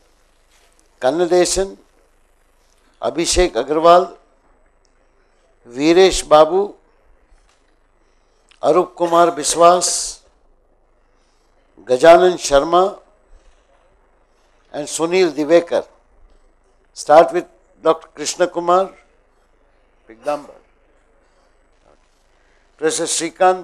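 An older man speaks calmly into a microphone in short phrases with pauses, heard over a loudspeaker.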